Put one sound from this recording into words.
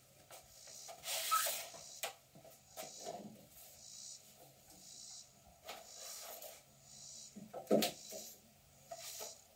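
Plastic pipes clatter against each other.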